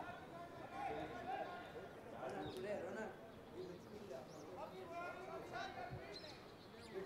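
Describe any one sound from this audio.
Men shout and call to one another across an open outdoor field.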